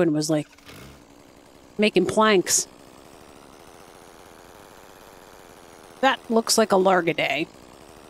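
A hoe digs into soil.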